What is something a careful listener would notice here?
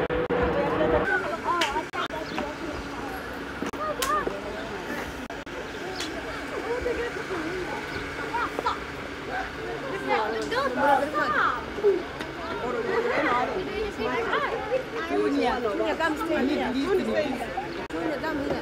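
Children and adults chatter outdoors.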